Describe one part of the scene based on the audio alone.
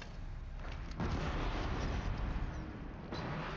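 An explosion bursts and crackles.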